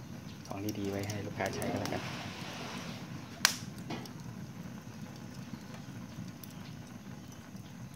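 Charcoal crackles and pops as it burns.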